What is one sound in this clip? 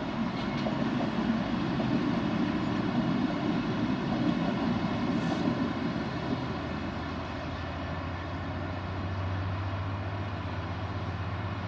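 A diesel locomotive rumbles past, its engine droning steadily.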